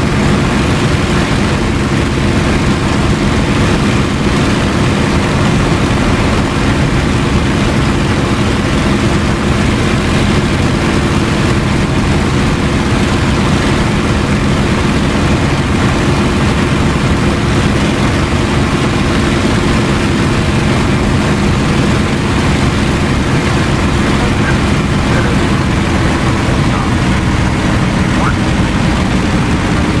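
A propeller aircraft engine drones loudly and steadily throughout.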